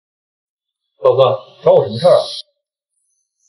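A young man asks a question.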